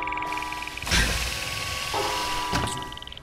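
A loud hiss bursts out as a seal releases.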